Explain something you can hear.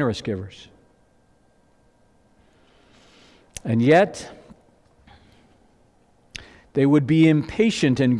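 A man speaks calmly through a microphone, with pauses.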